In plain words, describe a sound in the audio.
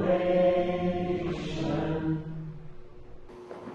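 A young boy sings slow, sustained notes in an echoing room.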